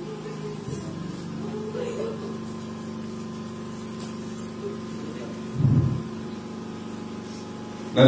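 An elderly man speaks calmly through a microphone and loudspeakers.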